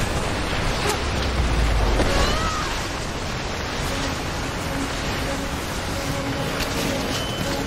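Snow and ice crash and rumble in a loud, deep roar.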